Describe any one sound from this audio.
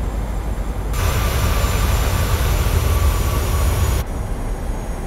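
A jet roars as it climbs away.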